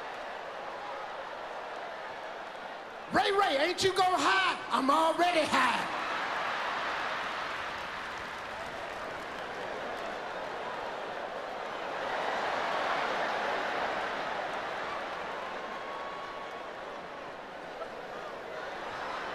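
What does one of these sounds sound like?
A large audience laughs and cheers.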